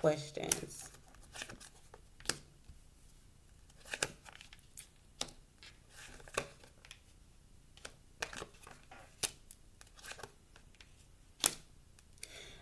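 Cards are laid down one by one with light taps on a table.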